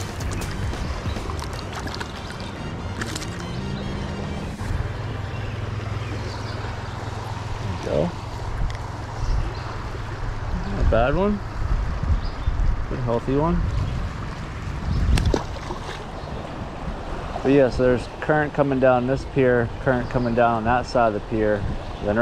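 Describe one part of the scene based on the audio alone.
A river rushes and burbles nearby.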